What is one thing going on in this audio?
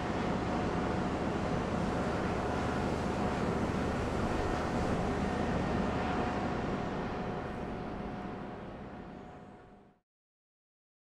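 Strong wind blows across the microphone outdoors.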